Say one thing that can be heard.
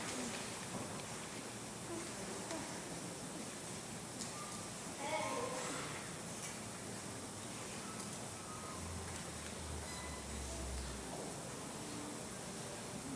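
An orchestra plays softly in a large hall.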